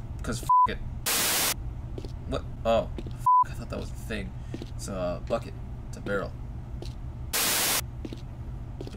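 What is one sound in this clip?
A burst of loud static hiss sounds.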